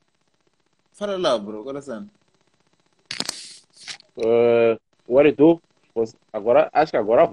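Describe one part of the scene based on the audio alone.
A young man talks and laughs with animation over an online call.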